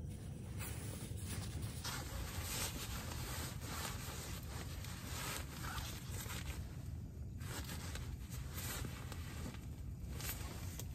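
Nylon fabric rustles and crinkles as a stuff sack is handled.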